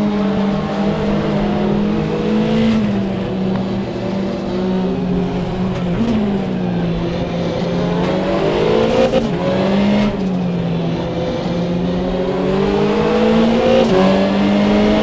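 A racing car engine roars at high revs, its pitch dipping briefly at each gear change.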